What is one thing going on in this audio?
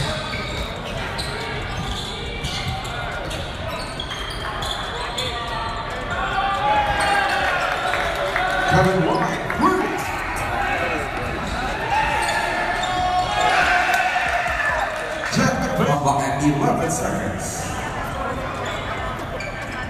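A crowd cheers and chatters loudly in a large echoing gym.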